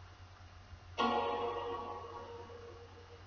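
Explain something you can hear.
A bright musical chime rings out from a television and slowly fades.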